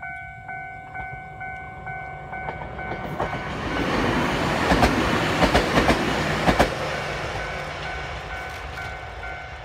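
A train rumbles past close by, loud and then fading.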